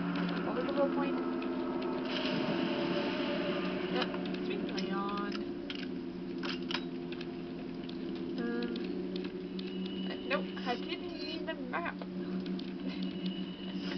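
A low, steady musical drone plays through a television speaker.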